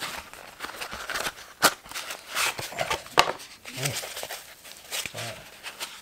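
A cardboard box rustles and scrapes.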